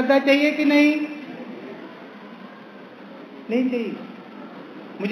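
A man sings slowly through a microphone, in long held notes.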